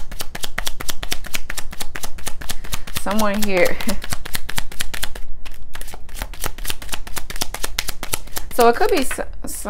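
Playing cards riffle and flutter quickly as they are shuffled by hand.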